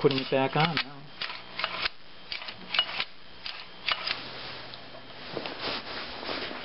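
Metal parts click and clatter as they are handled close by.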